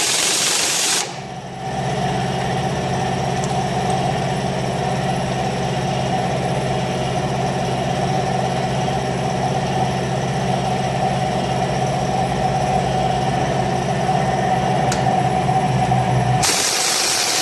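A pneumatic impact wrench whirs steadily.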